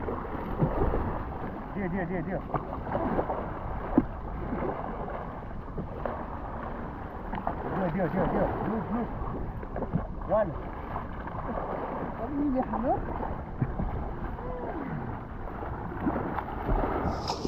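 Water splashes as a kayak rolls over.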